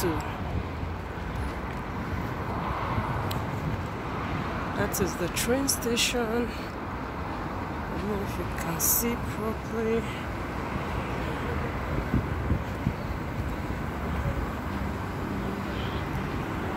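Wind blows steadily outdoors in an open square.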